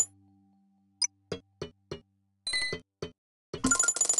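A small ball clicks as it bounces and drops.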